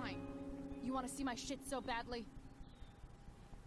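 A young woman speaks sullenly.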